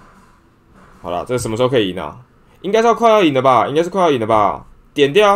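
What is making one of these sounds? A young man talks animatedly close to a microphone.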